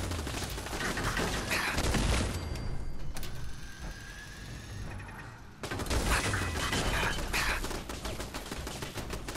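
A machine gun fires rapid bursts nearby.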